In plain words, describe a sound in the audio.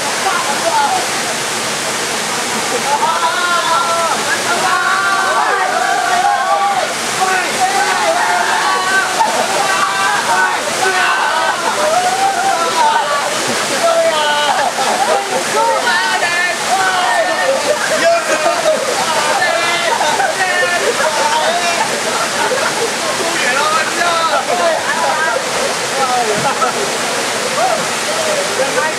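Water splashes as people move about in it.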